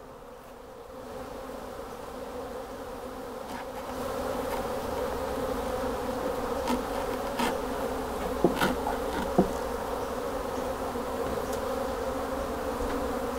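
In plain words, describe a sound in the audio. Bees buzz steadily around an open hive.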